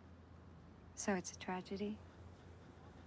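A young woman speaks softly and sadly nearby.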